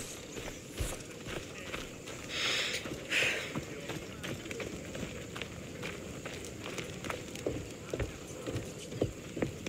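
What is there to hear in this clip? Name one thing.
Footsteps run quickly over dirt and wooden boards.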